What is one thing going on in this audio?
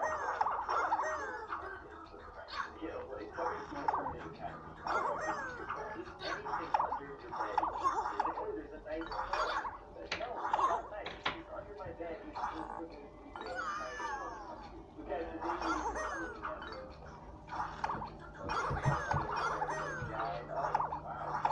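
A cheerful electronic game tune plays through a small tinny speaker.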